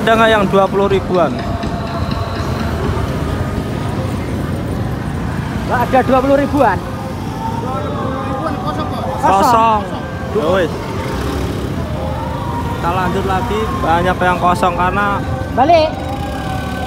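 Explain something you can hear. Traffic hums steadily along a street.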